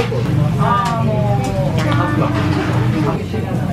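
Glass beer mugs clink together in a toast.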